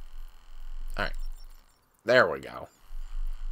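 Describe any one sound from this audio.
An electronic lock chimes as it unlocks.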